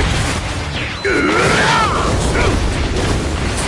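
A heavy punch smashes with a crunching impact.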